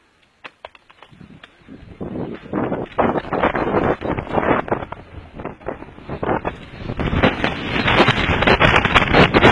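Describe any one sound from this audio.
Bicycle tyres roll fast over a dirt trail.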